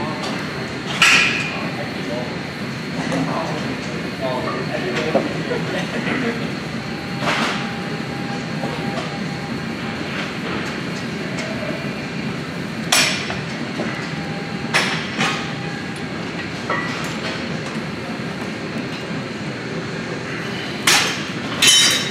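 Gym machines clank with sharp metal knocks.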